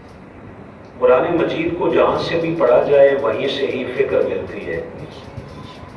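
A man speaks with animation into a microphone, heard through a loudspeaker.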